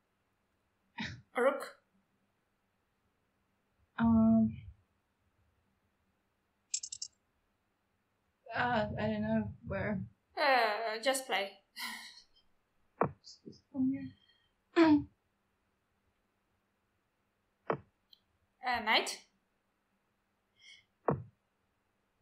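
A young woman talks in short bursts over an online call.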